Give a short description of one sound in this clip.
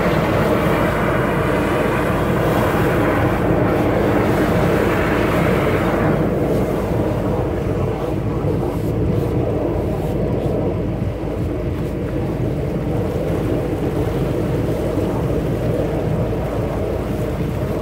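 Water sprays steadily from a hose and patters onto grass.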